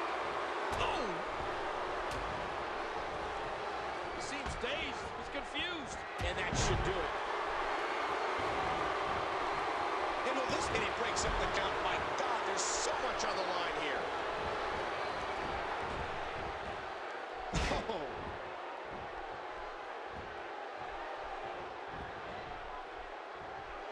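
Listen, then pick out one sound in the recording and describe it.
A large crowd cheers and roars loudly throughout.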